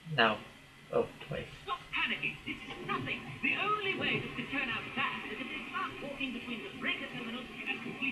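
Two men talk calmly to each other.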